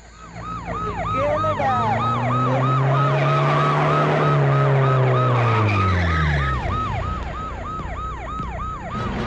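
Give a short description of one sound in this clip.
A siren yelps rapidly and steadily.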